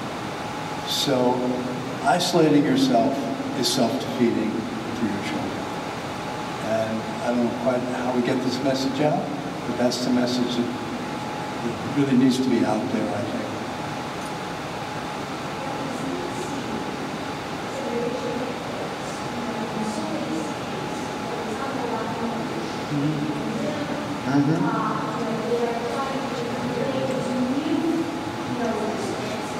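An elderly man speaks calmly at a distance, heard through a loudspeaker.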